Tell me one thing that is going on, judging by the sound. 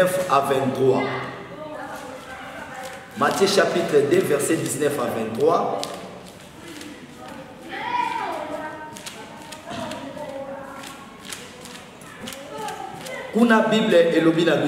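A man speaks with feeling, close to a microphone.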